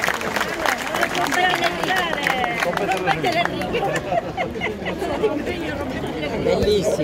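A crowd of men and women chants and sings together.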